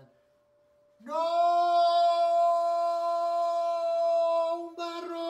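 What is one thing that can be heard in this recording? A man hums a long, steady, loud note.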